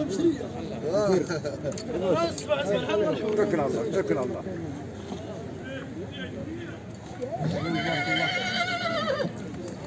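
A crowd of men talks loudly nearby.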